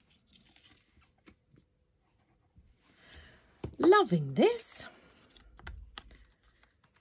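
Hands handle a paper card, with light rustling and tapping.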